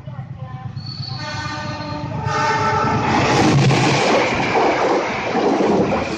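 A train rumbles closer and roars past on the tracks.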